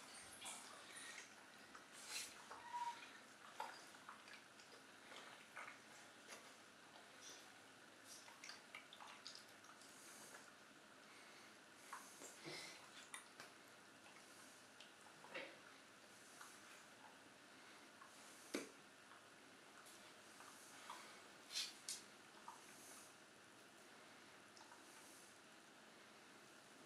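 A bear cub chews and crunches food noisily, close by.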